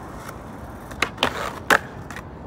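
A skateboard clacks and slaps sharply against a ledge and the ground.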